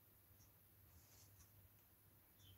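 Brush handles clatter faintly as a brush is picked up.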